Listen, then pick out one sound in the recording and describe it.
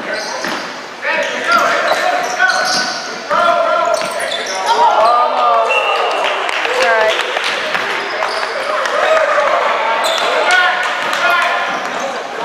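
Spectators and players shout and cheer, echoing in a large hall.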